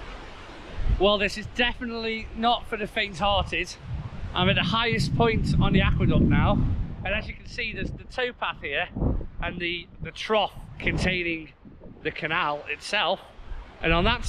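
A middle-aged man talks cheerfully close to the microphone.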